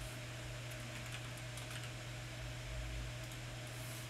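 Computer keys click under typing fingers.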